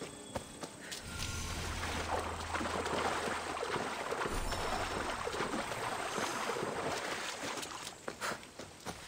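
Water splashes as a person wades through a shallow lake.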